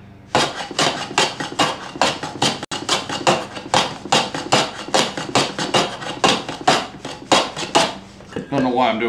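Sandpaper rasps back and forth over wood in quick, even strokes.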